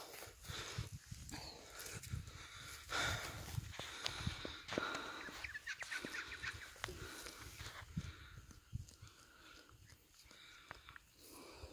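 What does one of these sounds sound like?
A wombat crops and chews short grass.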